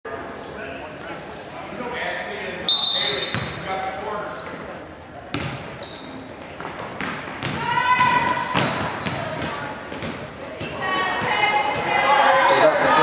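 A crowd in a large echoing gym cheers and shouts.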